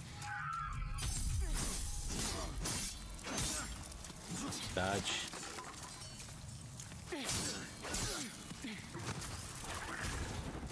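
Swords clash and slash in a game fight.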